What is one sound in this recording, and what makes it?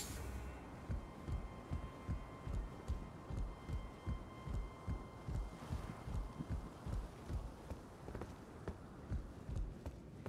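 Heavy footsteps thud quickly and evenly on wood and stone.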